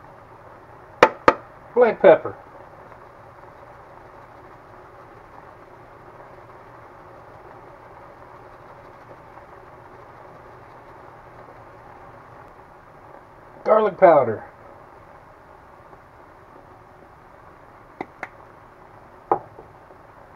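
A plastic spice shaker lid clicks open and shut.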